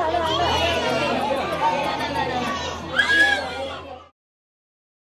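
Several adults chat loudly nearby in a lively group.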